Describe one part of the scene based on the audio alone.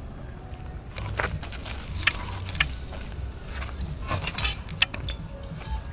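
A steel rod clanks and scrapes against a metal bending jig.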